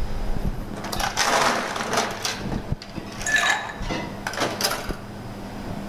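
Ice rattles and clinks in a glass.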